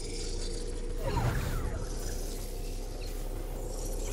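A storm wall whooshes and hums close by.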